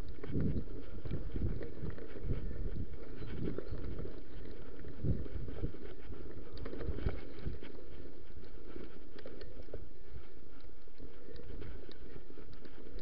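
Bicycle tyres roll and bump over a dirt trail.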